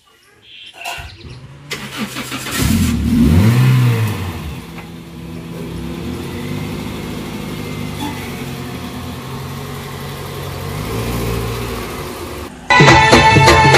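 A car engine idles steadily nearby.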